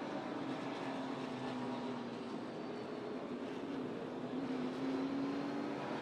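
A race car engine roars loudly at high speed, its pitch slowly rising and falling.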